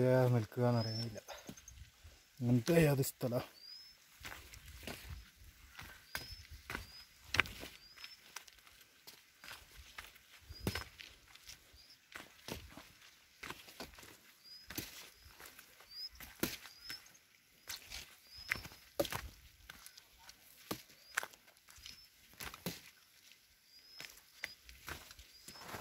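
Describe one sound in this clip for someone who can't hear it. Footsteps crunch and scrape on a rocky path.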